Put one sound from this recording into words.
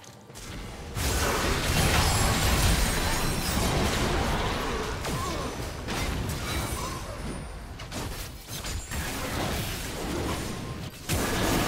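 Spells and attacks in a video game burst and crackle rapidly during a fight.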